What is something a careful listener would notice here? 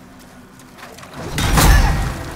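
Blades clash loudly in a fight.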